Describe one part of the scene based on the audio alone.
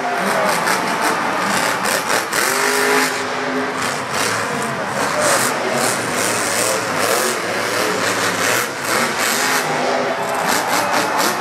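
A monster truck engine roars loudly in a large arena.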